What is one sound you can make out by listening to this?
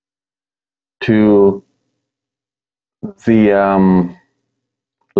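A man speaks briefly into a close microphone, in short phrases with pauses.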